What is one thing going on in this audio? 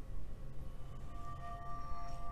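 A bright electronic chime rings.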